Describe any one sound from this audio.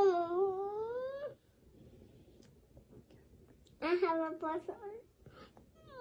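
A little girl speaks close by in a high, whiny voice.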